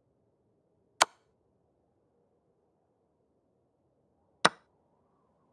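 A chess piece clicks sharply into place.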